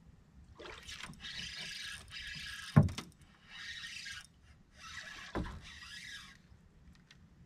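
A fishing reel winds and whirs in bursts.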